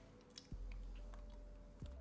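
A young woman gulps water from a plastic bottle.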